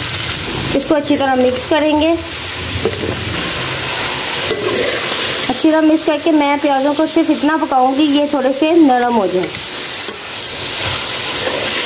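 A metal spoon scrapes against a pan.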